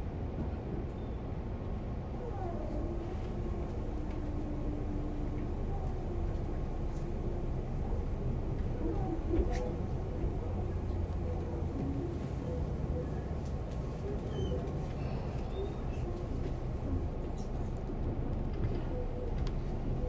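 A train rumbles along the tracks with a low steady hum.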